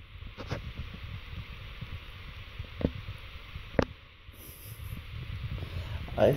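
A rabbit nibbles and chews on a banana peel up close.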